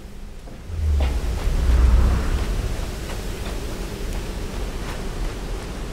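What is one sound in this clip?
Footsteps crunch on loose stone.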